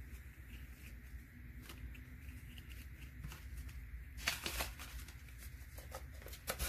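Paper money and folded paper rustle and crinkle close by.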